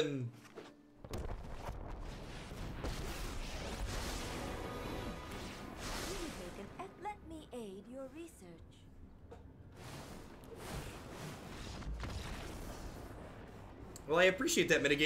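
A game's magic effects whoosh and rumble.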